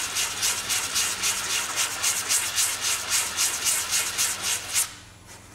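A hand rubs an abrasive pad back and forth over a hard surface in quick, rhythmic strokes.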